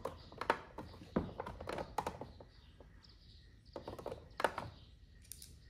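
Plastic parts knock and rattle as a hand handles a motor head.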